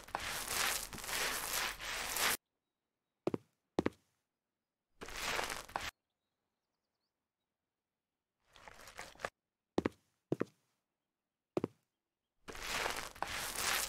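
A paint roller swishes in bursts across a surface.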